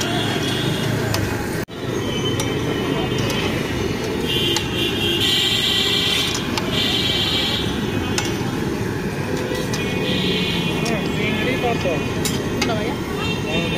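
A metal ladle scrapes and clinks against a wok.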